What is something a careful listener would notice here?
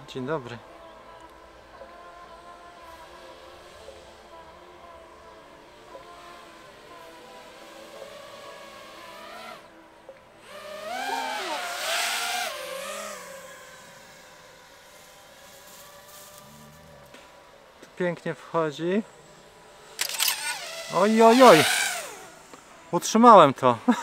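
A small drone's motors whine and rise and fall sharply in pitch.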